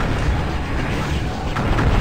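A fireball whooshes and bursts.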